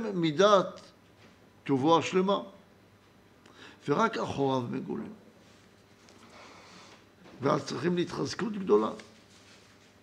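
An elderly man speaks slowly and calmly into a close microphone, with pauses.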